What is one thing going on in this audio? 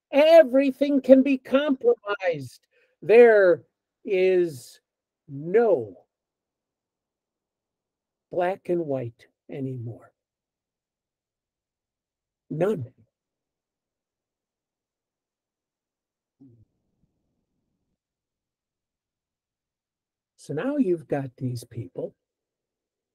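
An older man speaks calmly in bursts with long pauses, heard through an online call.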